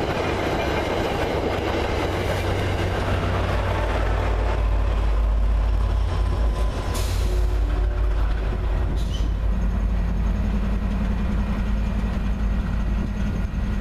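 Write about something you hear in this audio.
A diesel locomotive engine rumbles deeply and steadily close by.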